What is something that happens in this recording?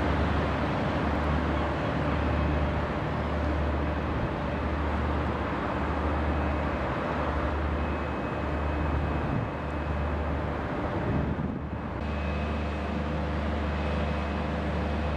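A ship's engine idles with a steady low hum nearby.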